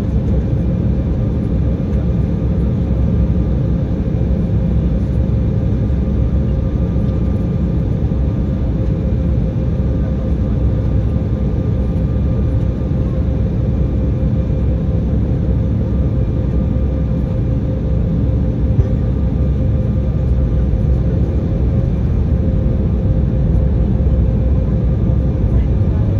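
Jet engines roar steadily, heard from inside an airliner cabin.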